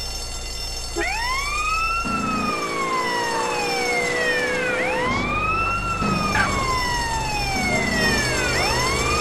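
A police siren wails loudly, rising and falling.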